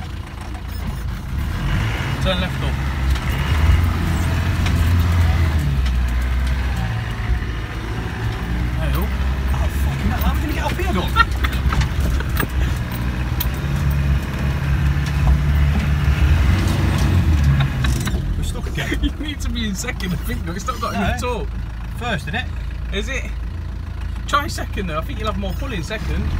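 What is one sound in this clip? A vehicle's engine rumbles low and steady from inside the cab.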